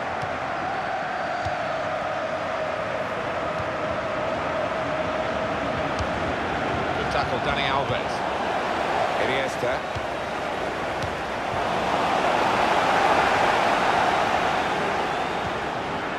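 A stadium crowd roars and murmurs throughout, swelling toward the end.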